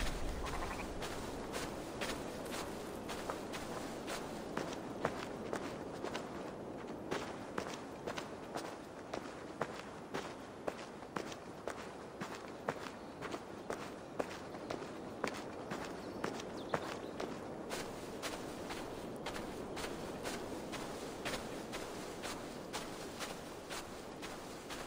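Footsteps swish and crunch through tall grass at a steady pace.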